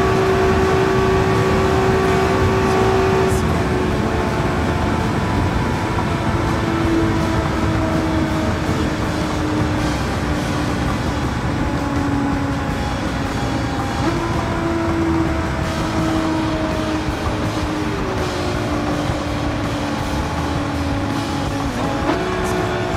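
A racing car engine roars at high speed, its pitch slowly dropping with gear changes.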